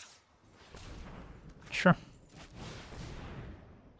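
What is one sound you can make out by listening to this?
A magical whoosh sweeps past with a bright shimmer.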